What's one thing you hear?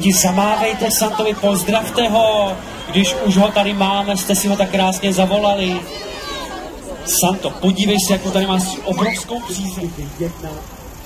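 Performers sing on an outdoor stage through loudspeakers.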